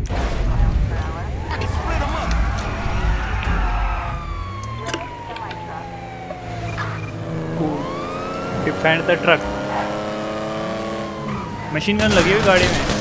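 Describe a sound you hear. A car engine roars and revs as the car speeds along a road.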